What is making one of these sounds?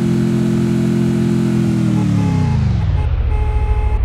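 A jeep engine runs and then winds down.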